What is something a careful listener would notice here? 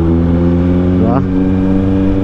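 A motorcycle engine briefly revs up during a gear change.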